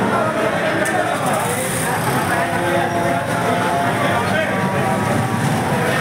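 A large crowd of men chatters loudly all around.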